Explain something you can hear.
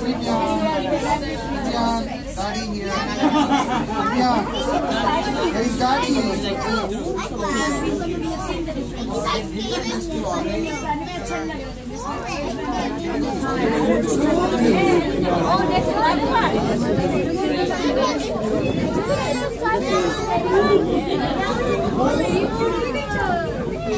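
Several people talk with animation close by.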